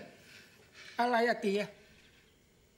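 A middle-aged man asks a short question.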